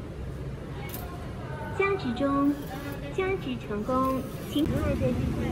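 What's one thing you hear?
A card machine beeps.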